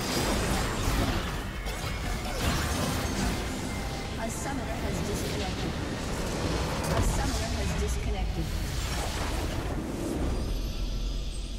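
Game battle effects crash and clash loudly.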